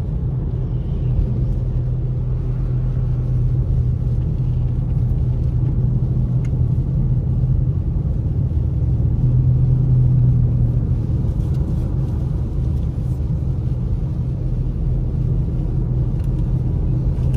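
A car engine hums steadily from inside while driving.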